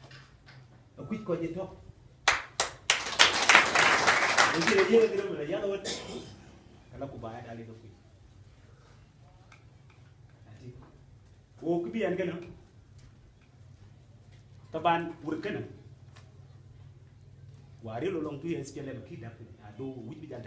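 A man speaks loudly to a crowd in short bursts with pauses.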